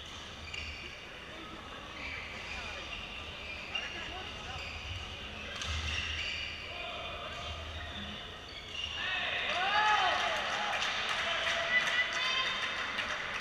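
A racket hits a shuttlecock with sharp pops in an echoing hall.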